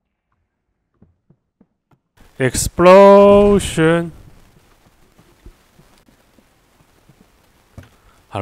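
Soft footsteps tap lightly across a hard floor.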